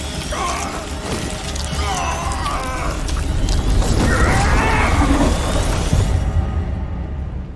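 Fire roars and crackles loudly.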